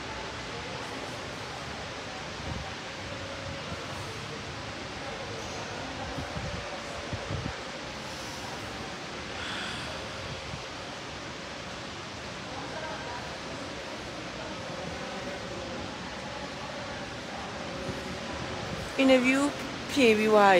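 A young woman talks close to a phone microphone, with animation.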